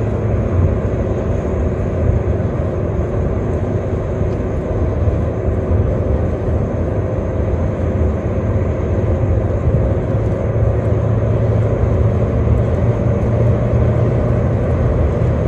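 A car rumbles steadily along the road.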